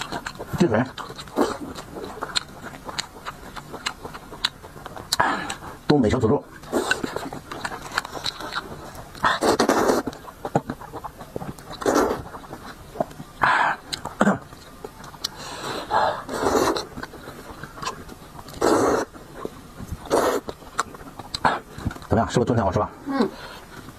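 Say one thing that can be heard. A man slurps noodles loudly, close up.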